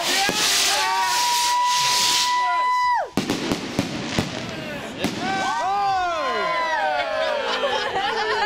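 Fireworks whistle with high, wavering shrieks.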